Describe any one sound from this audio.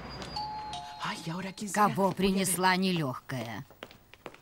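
A middle-aged woman speaks with animation.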